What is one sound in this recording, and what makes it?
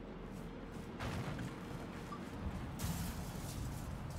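Heavy boots thud as a figure lands from a jump.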